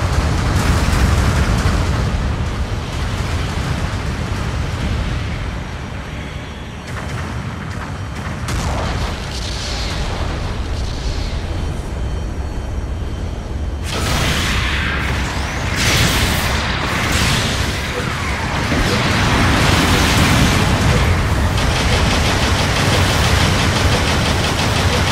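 Thrusters roar steadily as a large robot moves.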